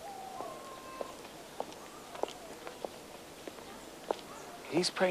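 Footsteps tap on stone pavement.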